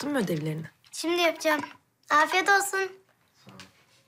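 A young girl speaks excitedly, close by.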